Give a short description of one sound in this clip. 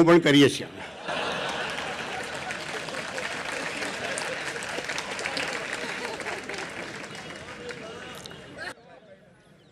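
A large audience claps and applauds.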